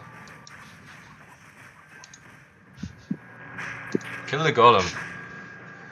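Weapons clash and spells crackle in a fight.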